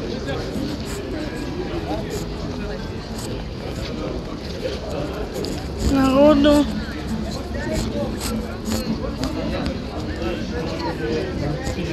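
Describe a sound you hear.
Footsteps shuffle on paving stones.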